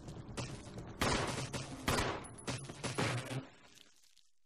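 Gunshots blast loudly in quick succession.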